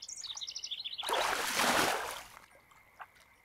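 A fish splashes in water.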